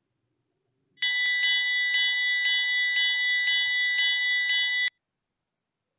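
A small bell rings repeatedly.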